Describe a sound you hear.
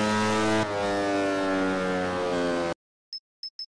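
A motorcycle engine roars at high speed.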